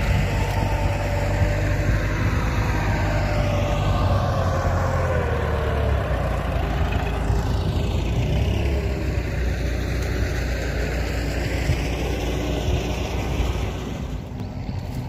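A tractor engine rumbles steadily in the distance.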